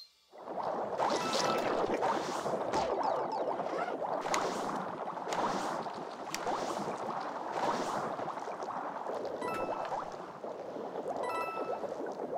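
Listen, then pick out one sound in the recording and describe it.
Bubbling underwater game sounds burble steadily.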